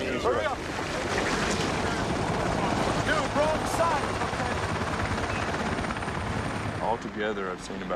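A helicopter's rotor thuds steadily in the distance.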